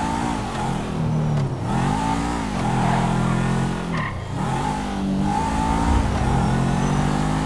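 A car engine revs up and down repeatedly as it drives.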